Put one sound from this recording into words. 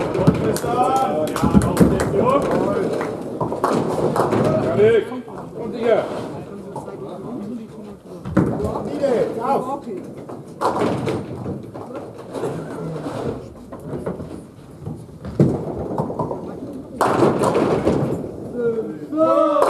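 Pins clatter as balls knock them over.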